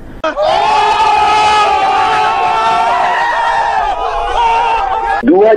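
A group of teenagers sings a long, loud note together, close by.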